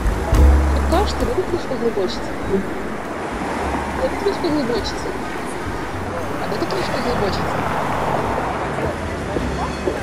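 A young woman asks questions in a calm voice, close by.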